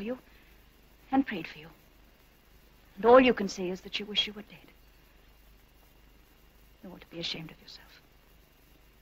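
A woman speaks calmly nearby.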